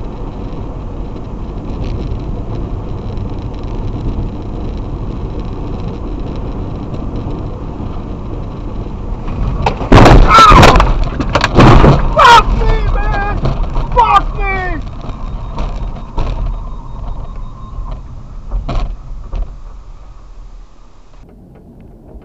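Tyres roll steadily on a highway with a low road rumble.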